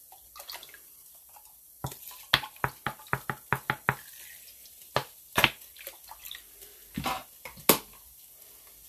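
A shaker bottle rattles as it is shaken over a pan.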